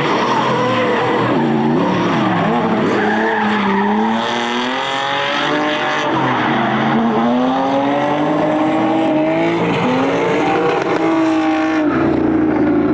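Tyres screech loudly on tarmac.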